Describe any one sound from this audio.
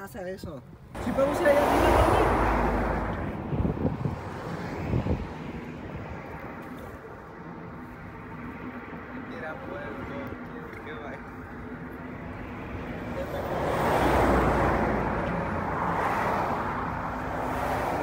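Vehicles rush past on a nearby road.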